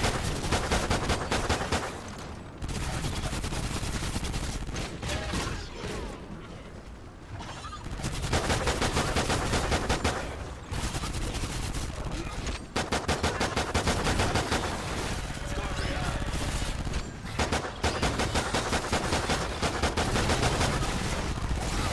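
Creatures screech and snarl.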